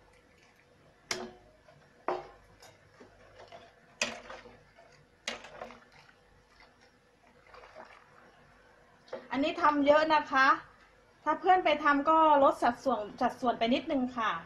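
A metal ladle clinks and scrapes against a pot while stirring.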